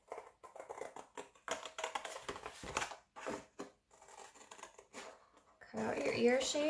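Scissors snip and crunch through thick cardboard.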